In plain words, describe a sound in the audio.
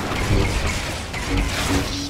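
Blaster shots fire in quick bursts.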